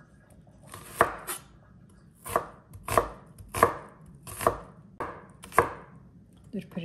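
A knife chops onion on a wooden board with sharp knocks.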